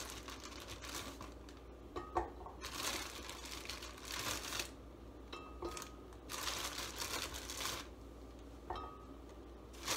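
Pieces of food drop and knock into a glass jug.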